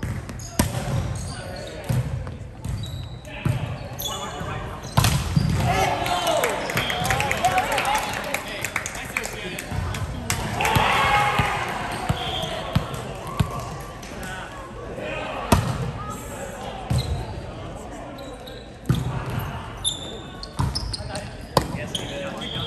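A volleyball is hit with sharp slaps in a large echoing hall.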